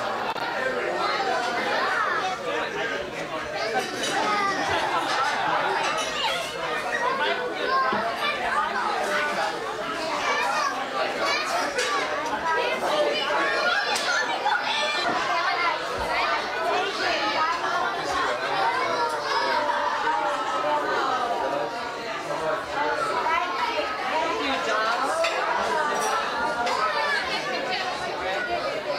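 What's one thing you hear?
A crowd of adults and children chatter all around in a busy room.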